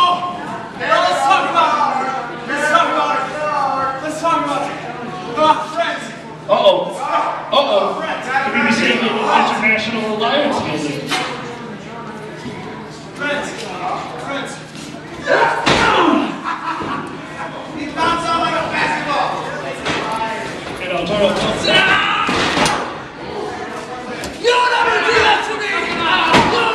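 Men in a crowd nearby shout and cheer.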